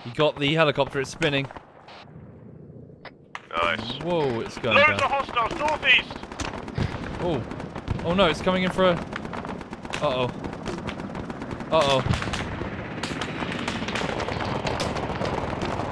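A helicopter's rotor thuds in the air.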